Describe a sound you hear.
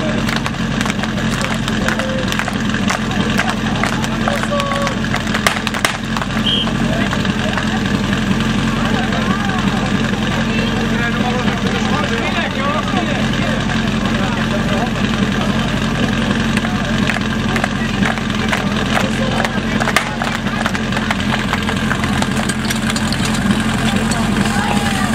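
A large outdoor crowd of men and women chatters and murmurs steadily.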